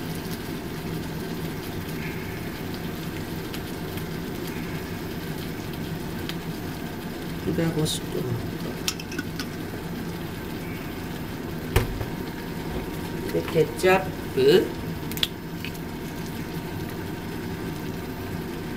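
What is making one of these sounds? Food sizzles steadily in a hot frying pan.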